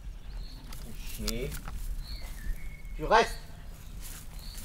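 A man calls out to a dog outdoors.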